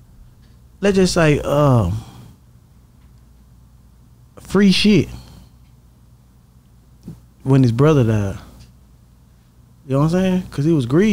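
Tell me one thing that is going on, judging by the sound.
A young man speaks with animation in short bursts, close to a microphone.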